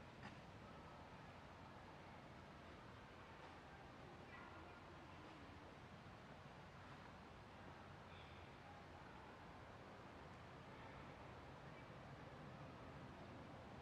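A small campfire crackles softly.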